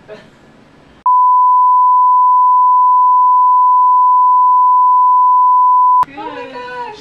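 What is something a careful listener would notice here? A steady, high-pitched test tone sounds loudly.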